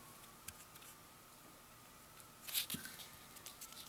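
A thin plastic tube is set down on cardboard with a light tap.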